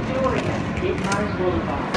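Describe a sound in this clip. Footsteps tap on a hard platform.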